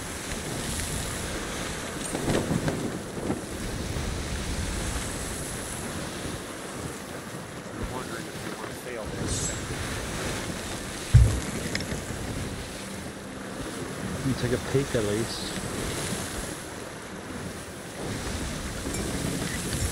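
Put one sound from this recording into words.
Wind howls through a ship's rigging.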